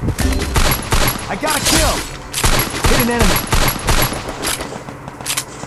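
Rapid gunshots crack and echo in quick bursts.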